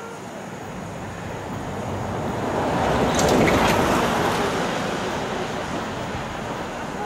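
A van drives past on the street, rising and fading.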